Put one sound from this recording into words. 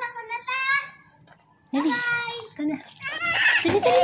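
A toddler babbles and squeals in a high voice nearby.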